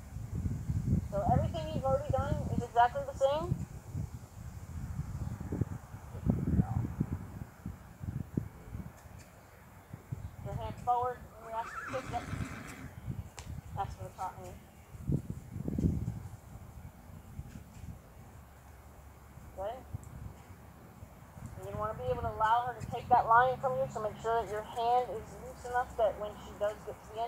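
A young girl talks outdoors with animation.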